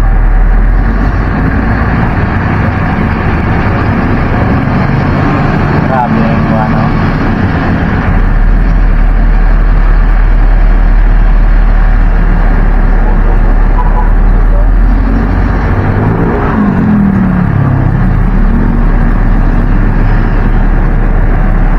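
Wind buffets against the open vehicle.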